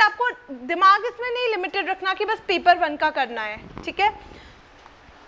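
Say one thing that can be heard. A young woman speaks with animation into a microphone close by.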